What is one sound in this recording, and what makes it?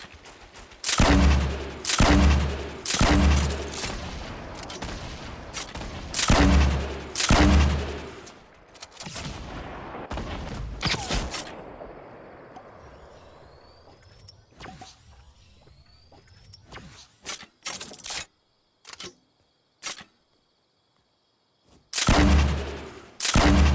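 Loud gunshots boom in heavy bursts.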